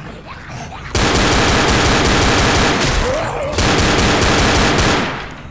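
A rifle fires in long, rapid bursts.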